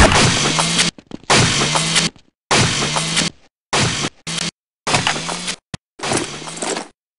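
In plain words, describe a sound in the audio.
A machine gun fires in long, rapid bursts.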